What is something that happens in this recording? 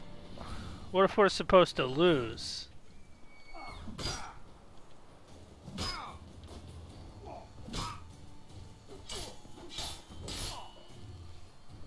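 Swords clash and swish in a fight.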